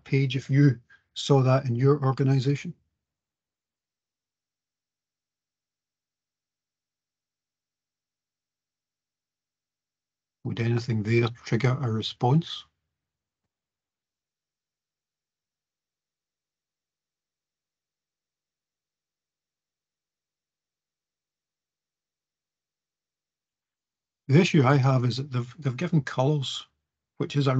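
A man speaks calmly over an online call, in short bursts with long pauses.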